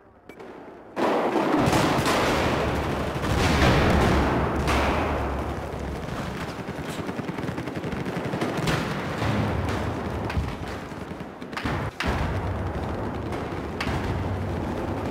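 Footsteps crunch over rubble and concrete.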